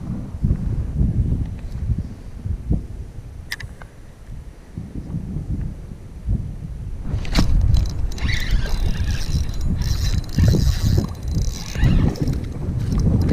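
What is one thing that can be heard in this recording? A fishing reel clicks as it is cranked.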